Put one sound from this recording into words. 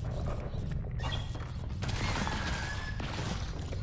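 Sharp electronic blasts zap and crackle in quick bursts.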